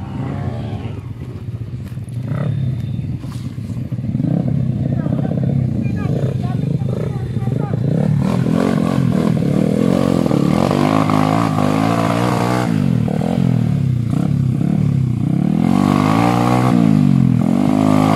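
A dirt bike engine revs hard nearby, rising and falling in pitch.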